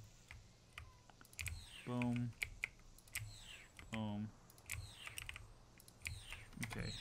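Sharp clicks from a computer game interface sound repeatedly.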